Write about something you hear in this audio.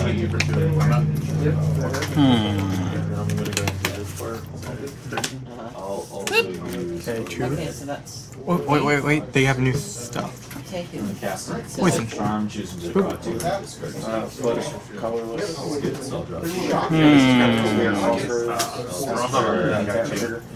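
Playing cards slap softly onto a table.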